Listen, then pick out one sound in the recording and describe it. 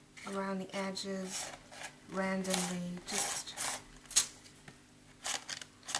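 A palette knife scrapes across paper.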